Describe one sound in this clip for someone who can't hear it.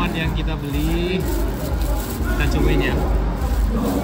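A plastic bag crinkles as a hand handles it.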